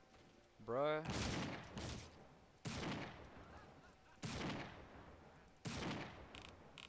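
A rifle fires several loud shots that echo briefly.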